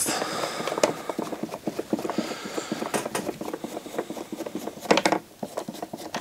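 A screwdriver turns a small screw with light clicks and scrapes.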